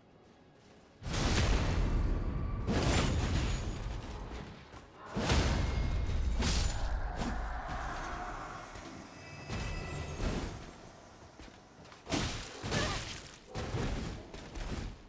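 Heavy weapons clash and strike with loud booming thuds.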